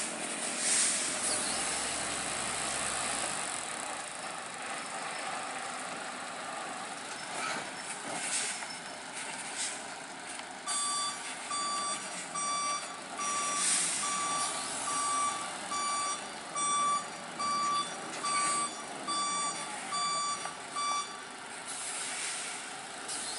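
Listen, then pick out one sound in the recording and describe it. A heavy truck engine rumbles as the truck moves slowly.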